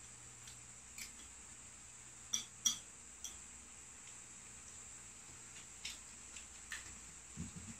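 Chopsticks click against dishes.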